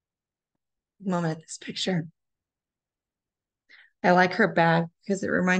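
A woman reads aloud expressively over an online call.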